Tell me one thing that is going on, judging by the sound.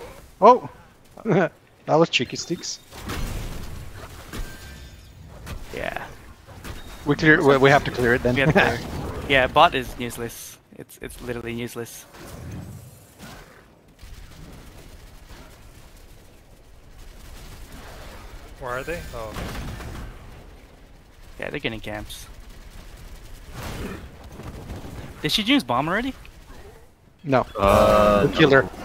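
Game combat effects clash and burst.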